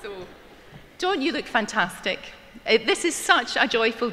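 A woman speaks into a microphone with animation, heard over loudspeakers in a large hall.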